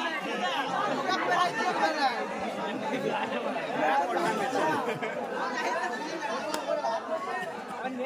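A crowd of men and boys shouts and chatters outdoors.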